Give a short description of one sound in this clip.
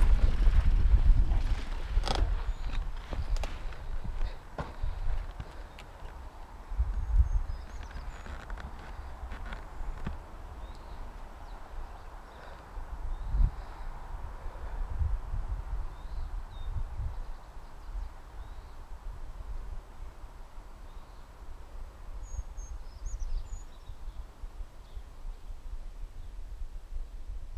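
A bicycle chain and frame clatter over bumps.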